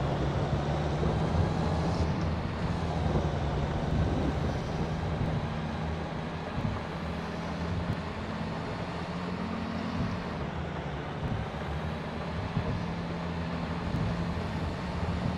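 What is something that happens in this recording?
A truck's diesel engine rumbles steadily.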